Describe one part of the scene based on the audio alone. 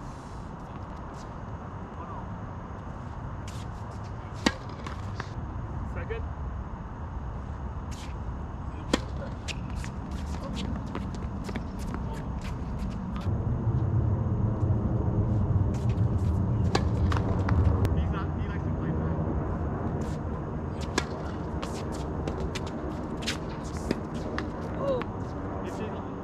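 Tennis rackets hit a ball back and forth with sharp pops.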